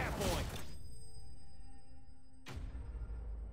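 A magic blast bursts with a loud crackling boom.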